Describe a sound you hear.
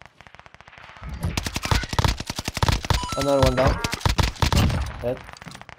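A light machine gun fires rapid bursts.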